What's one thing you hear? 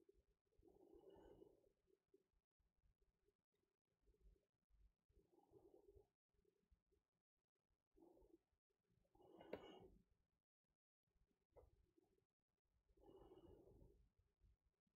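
A young woman murmurs briefly and quietly into a microphone.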